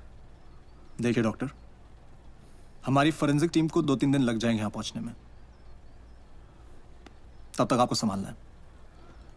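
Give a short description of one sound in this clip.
A man speaks calmly and quietly, close by.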